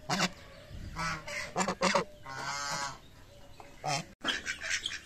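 Geese honk loudly nearby.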